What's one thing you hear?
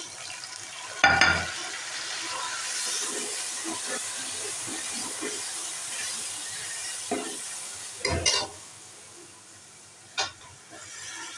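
A metal spoon scrapes and clanks against a metal pot.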